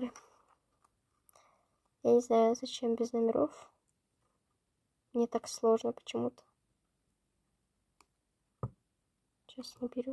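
Paper rustles softly between fingers.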